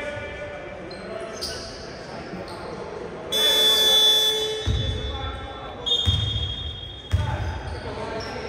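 A basketball bounces on a wooden court in an echoing hall.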